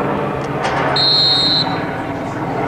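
A referee's whistle blows once in a short, sharp blast.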